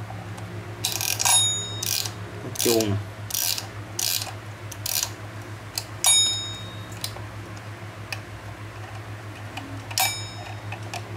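Small metal parts click as they are turned by hand.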